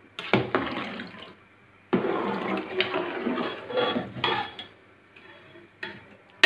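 A metal ladle stirs and scrapes inside a metal pot.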